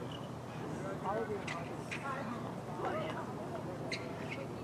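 Young men shout to each other across an outdoor field at a distance.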